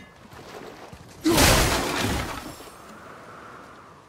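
An axe whooshes through the air and strikes.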